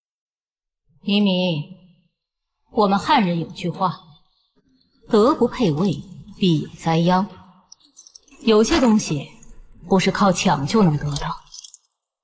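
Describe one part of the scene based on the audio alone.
A woman speaks slowly and firmly, close by.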